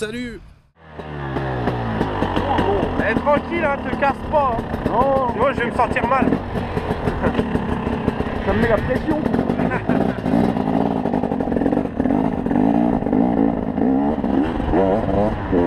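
A motorbike engine idles and revs nearby.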